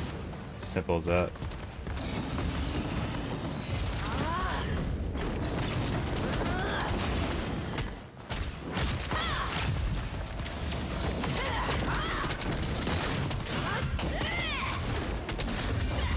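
Spell blasts and magical impacts crackle and boom throughout.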